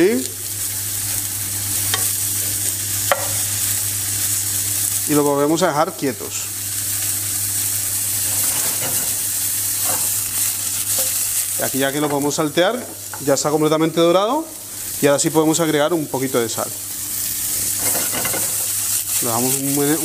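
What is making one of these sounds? Mushrooms sizzle steadily in a hot frying pan.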